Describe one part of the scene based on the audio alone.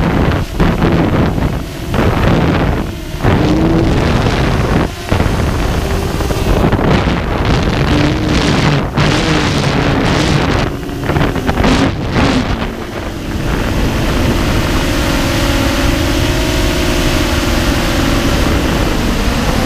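Quadcopter motors whine, their pitch rising and falling as the drone manoeuvres.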